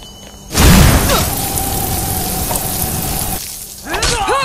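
A magic spell blasts with a loud crackling roar.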